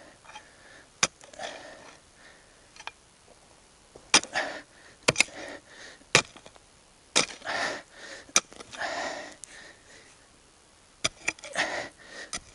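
A shovel blade strikes the ground with sharp knocks.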